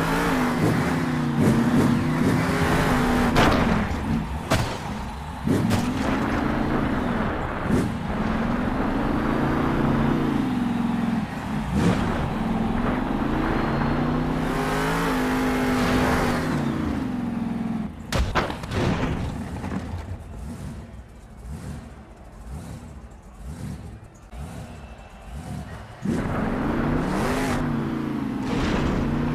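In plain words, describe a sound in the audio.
A monster truck engine roars, revving up and down.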